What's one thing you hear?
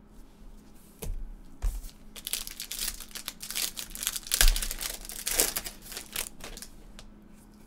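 Plastic card cases rustle and clack as they are handled.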